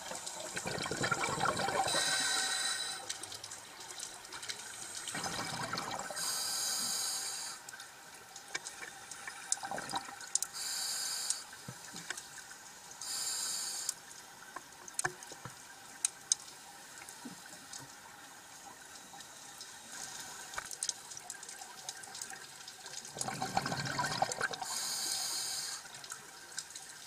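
A diver breathes in through a regulator with a hissing rush underwater.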